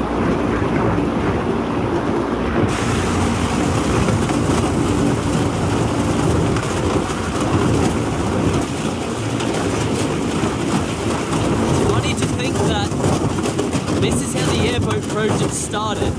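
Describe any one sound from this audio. A boat hull scrapes and crunches over thin ice.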